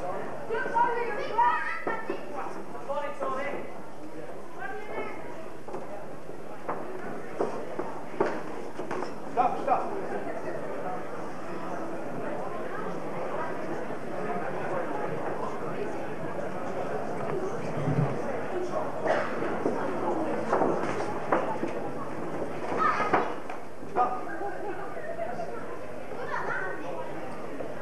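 A crowd of men shouts and calls out encouragement.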